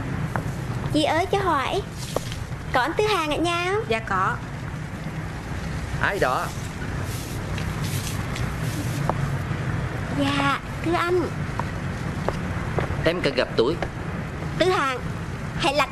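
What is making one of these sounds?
A young woman speaks nearby in a lively voice.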